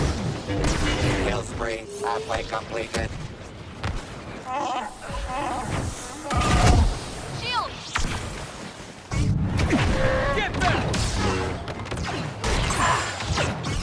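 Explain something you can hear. A lightsaber hums and swings with a buzzing whoosh.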